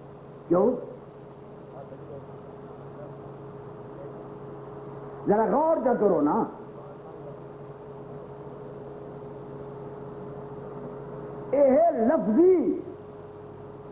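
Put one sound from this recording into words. An elderly man chants in a wailing voice through a microphone, in bursts with long pauses.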